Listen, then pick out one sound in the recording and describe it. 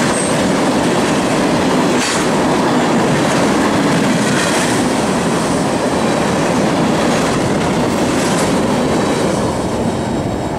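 Train wheels clack over the rail joints.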